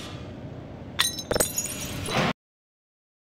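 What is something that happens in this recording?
A door swings open.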